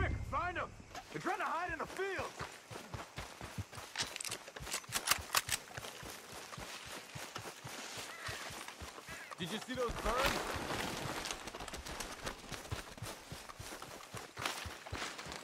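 Footsteps run and rustle through tall grass and dry crops.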